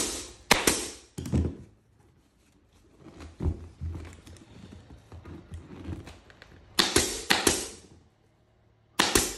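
A pneumatic staple gun fires with sharp snaps.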